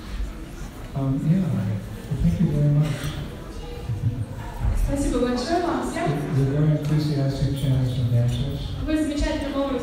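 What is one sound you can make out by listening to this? An elderly man speaks calmly into a microphone close by.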